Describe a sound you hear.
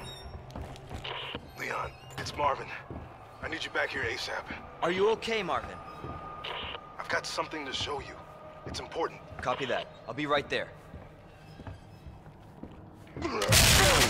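Boots thud on a wooden floor.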